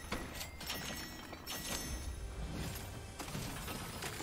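Bright chiming effects ring out as game items are picked up.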